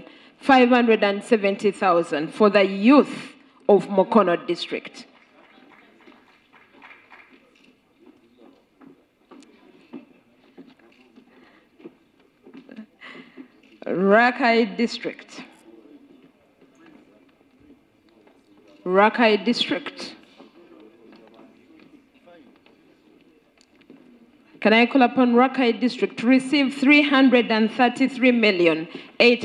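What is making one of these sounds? A man speaks through a loudspeaker in a large echoing hall, in short bursts.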